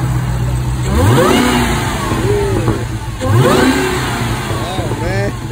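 A car engine revs loudly twice and settles back.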